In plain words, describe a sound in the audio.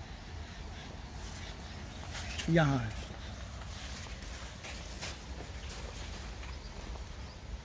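Leaves rustle as hands handle a plant.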